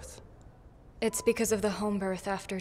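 A woman speaks calmly in reply.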